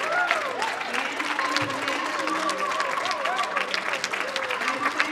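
A large crowd claps and applauds steadily in a big room.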